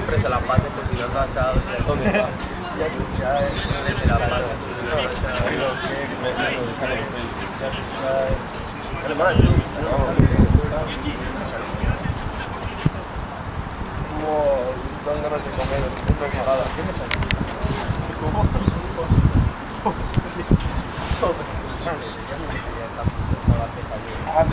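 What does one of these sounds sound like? Men shout and call out across an open field, some way off.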